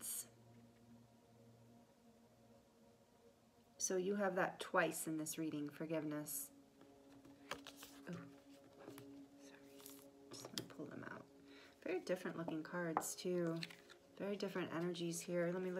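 A card is handled and set down on a table.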